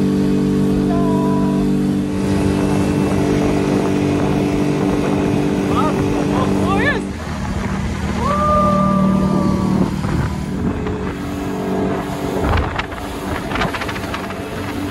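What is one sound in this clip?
Wind blows hard over the microphone.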